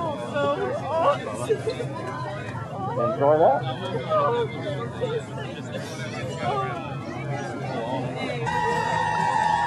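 A crowd of people talk and cheer excitedly nearby.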